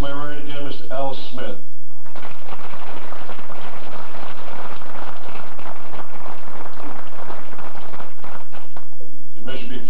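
A man speaks into a microphone through a loudspeaker.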